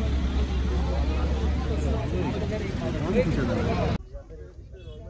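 A vehicle engine hums on a busy road.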